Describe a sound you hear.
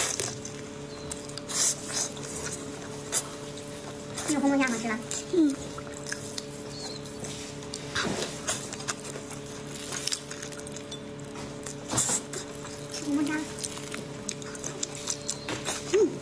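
A young woman slurps and chews food wetly, close up.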